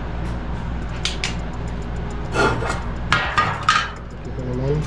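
Metal tools clink and clatter on a hard workbench.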